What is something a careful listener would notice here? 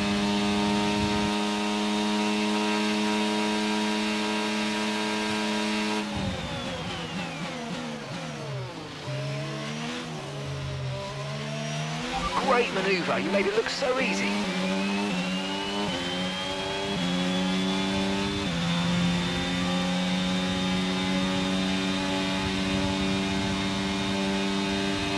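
A racing car engine screams at high revs, drops sharply while braking and downshifting, then climbs back up through the gears.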